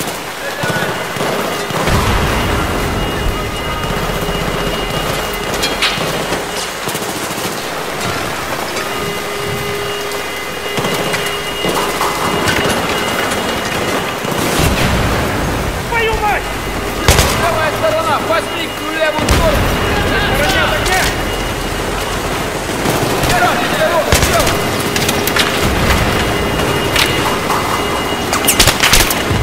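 Gunshots crack and echo in a large concrete space.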